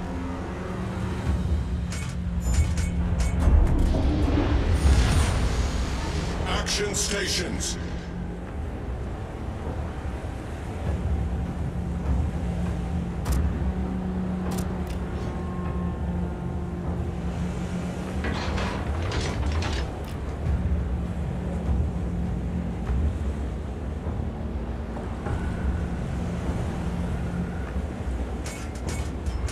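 A ship's engine rumbles steadily.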